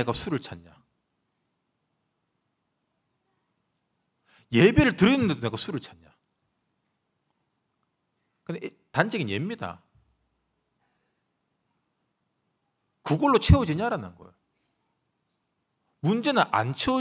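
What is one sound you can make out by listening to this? A young man speaks calmly into a microphone in bursts with long pauses.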